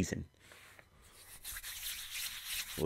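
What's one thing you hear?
A man rubs his hands together.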